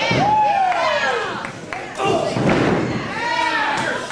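A wrestler's body slams onto a ring canvas.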